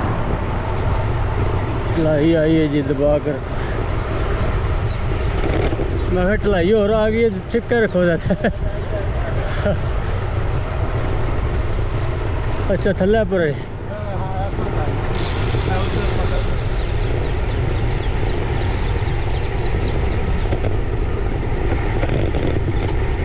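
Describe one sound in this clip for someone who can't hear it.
Wind roars steadily past a moving bicycle outdoors.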